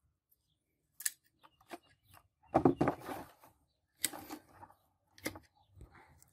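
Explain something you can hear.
Pruning shears snip sharply through thin twigs.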